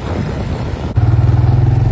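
An ATV engine idles with a steady throb.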